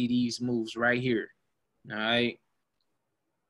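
A young man speaks calmly into a microphone, close by.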